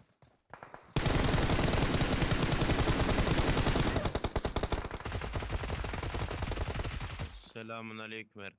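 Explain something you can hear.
Gunfire rattles rapidly in quick bursts.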